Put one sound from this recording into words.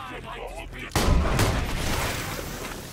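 A gun fires in loud bursts.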